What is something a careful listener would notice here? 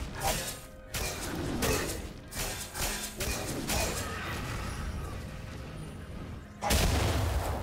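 Game spell effects crackle and whoosh in bursts.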